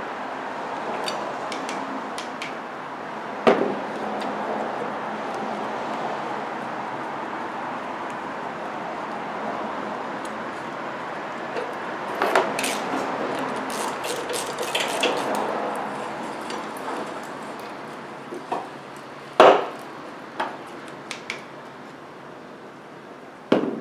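Metal tools knock and clank against a car battery.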